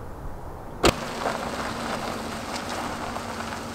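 A car engine starts and idles with a low hum.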